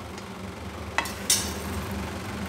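A metal pan clanks down onto a stove.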